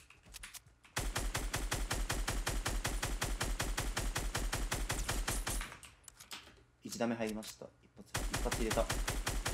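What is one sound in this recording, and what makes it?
A rifle fires in rapid, steady bursts close by.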